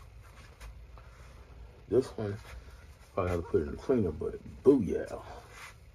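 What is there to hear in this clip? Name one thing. Fabric rustles as a shirt is handled.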